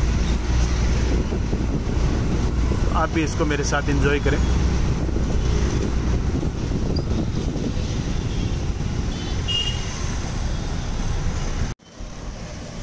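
Traffic passes by on a busy street.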